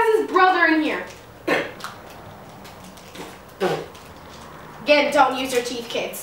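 Plastic wrapping crinkles as a package is torn open.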